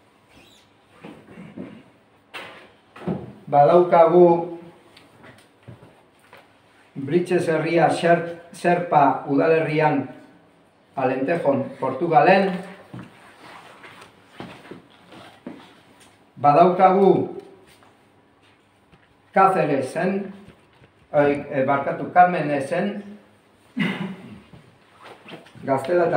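A middle-aged man speaks calmly in short phrases, as if giving a talk in a quiet room.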